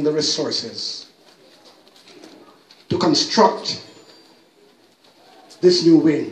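A man prays aloud nearby in a slow, earnest voice, pausing between phrases.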